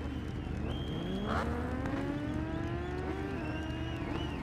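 A motorcycle engine revs up, rising in pitch.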